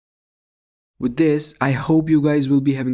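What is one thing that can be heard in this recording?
A full electronic beat with bass and synths starts playing.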